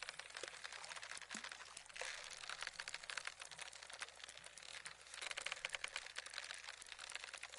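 A fishing reel clicks rapidly as line is wound in.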